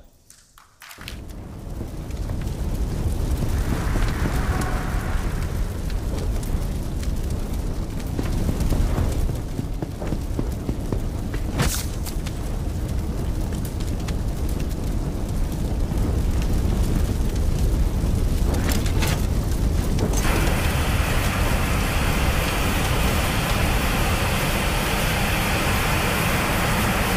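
Flames roar steadily.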